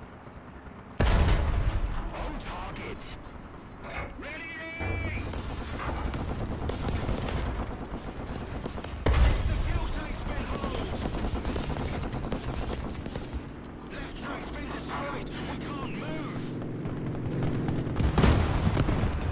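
A cannon fires with loud, sudden booms.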